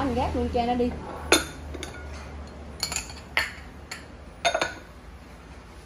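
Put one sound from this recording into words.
Porcelain cups clink against a stone tabletop as they are picked up and set down.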